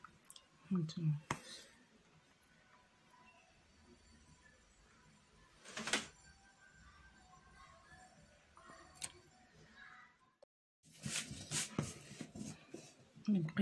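Thread rustles softly as it is pulled through fabric.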